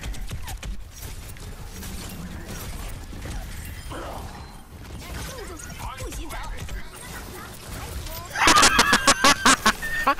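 A video game weapon fires in quick bursts with bangs and blasts.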